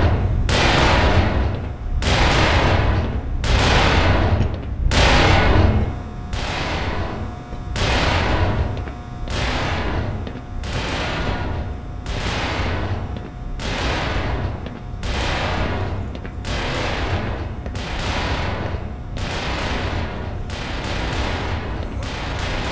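Footsteps clang on a metal grating floor.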